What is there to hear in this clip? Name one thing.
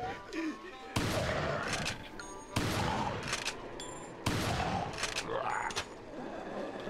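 Shotgun blasts ring out in quick succession.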